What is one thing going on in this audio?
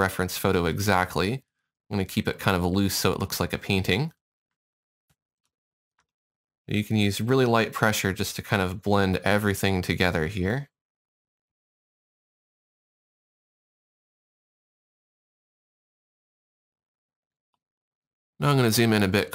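A man talks calmly and close to a microphone, in short bursts with long pauses.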